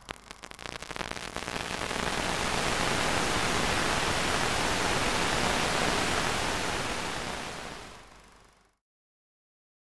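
Loud static hiss crackles, swells and then cuts off abruptly.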